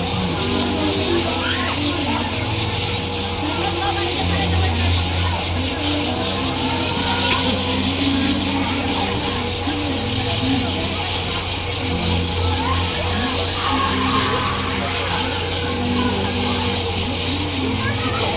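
A fairground ride's machinery hums and whirs steadily as it spins.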